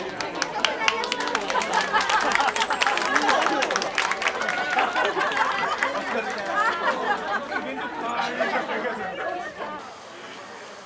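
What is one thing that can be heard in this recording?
Hands clap among a crowd of men.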